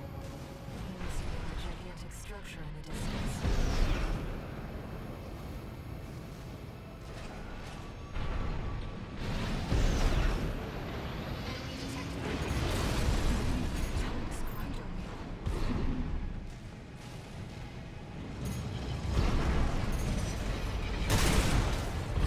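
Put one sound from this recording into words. A mech's thrusters roar as it boosts along.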